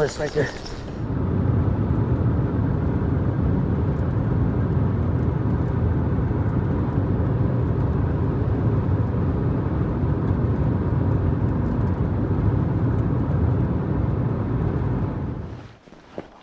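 A car engine hums steadily and tyres rumble on a road.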